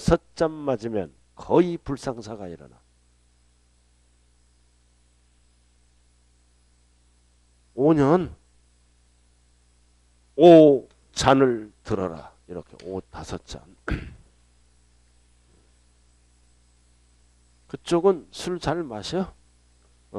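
A middle-aged man lectures through a headset microphone, speaking calmly in bursts with pauses.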